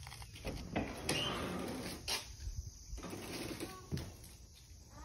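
A plastic door rattles and scrapes as it swings open.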